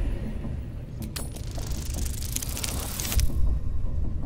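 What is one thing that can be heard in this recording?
A die rattles and clatters as it rolls.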